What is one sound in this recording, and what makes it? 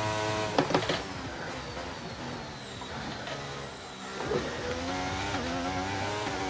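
A racing car engine drops in pitch, then revs back up.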